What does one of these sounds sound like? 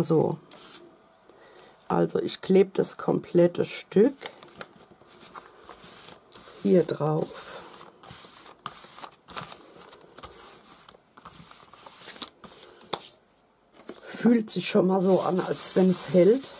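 Paper rustles and slides as it is handled and pressed flat.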